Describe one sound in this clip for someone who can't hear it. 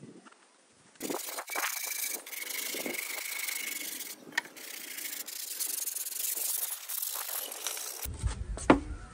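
A knife scrapes and squeaks through a stiff foam sheet.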